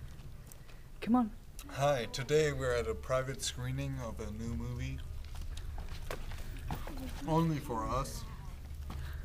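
A young man talks casually, close by.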